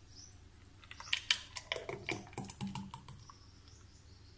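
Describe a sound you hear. Thick juice pours from a jug into a glass.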